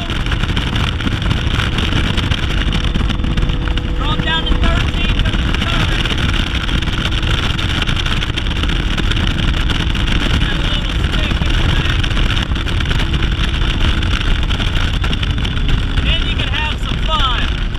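A boat motor hums steadily as the boat moves over water.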